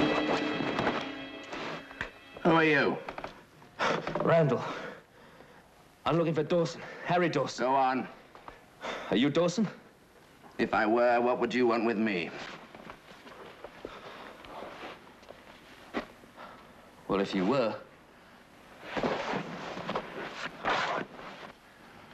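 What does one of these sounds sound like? A man cries out and groans in pain close by.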